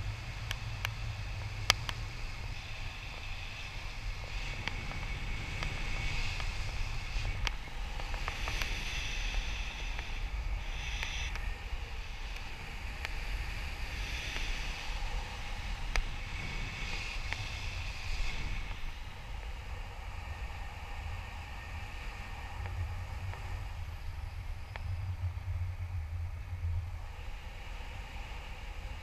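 Wind rushes loudly past at height.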